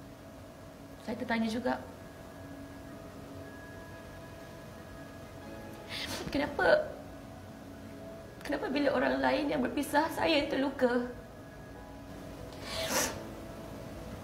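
A young woman cries and speaks through tears, close by.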